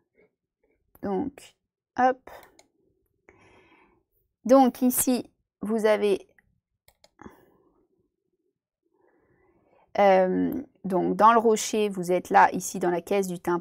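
A young woman speaks calmly through a microphone, with pauses.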